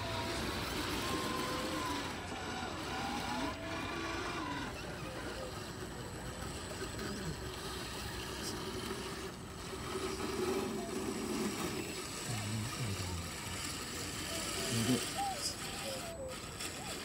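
Small electric motors whine as toy trucks crawl over rock.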